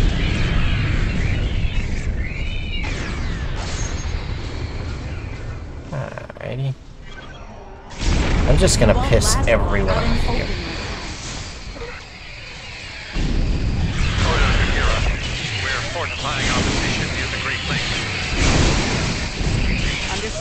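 A crackling energy burst explodes.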